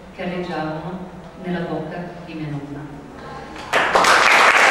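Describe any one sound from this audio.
A woman sings into a microphone in an echoing hall.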